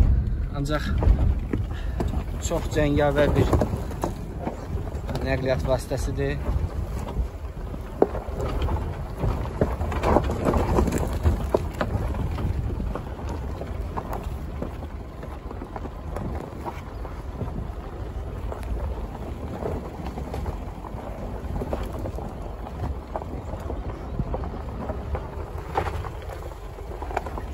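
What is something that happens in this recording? A car engine rumbles steadily at low speed.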